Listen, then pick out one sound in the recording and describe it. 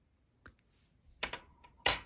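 Metal scissors clink as they are picked up.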